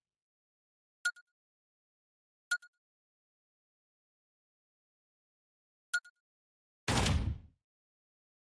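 A game's menu clicks with short chimes.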